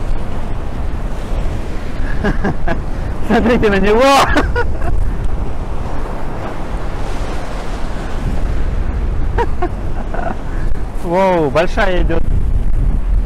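Waves crash and churn against the shore.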